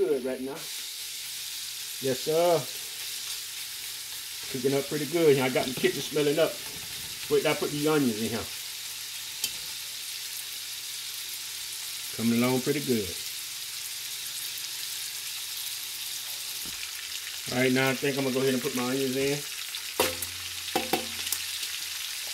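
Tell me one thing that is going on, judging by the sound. Meat sizzles softly in a hot pot.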